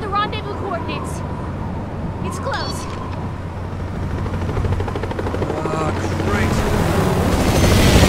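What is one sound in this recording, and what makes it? A young man speaks in a low, calm voice.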